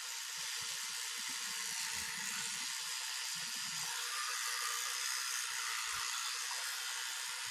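A woman brushes her teeth with a scrubbing sound.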